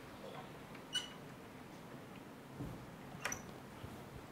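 A door latch clicks shut.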